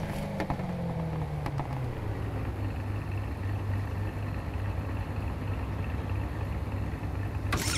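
A race car engine hums low and steady, its pitch dropping as it slows.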